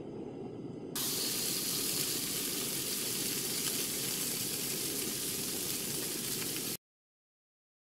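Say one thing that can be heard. Something sizzles loudly in a hot frying pan.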